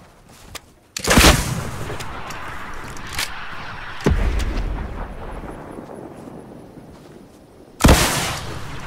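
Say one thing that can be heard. A rocket launcher fires with a loud whoosh.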